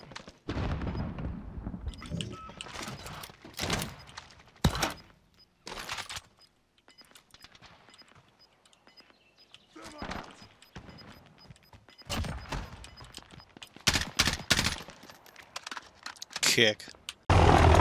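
Gunshots crack out in short bursts.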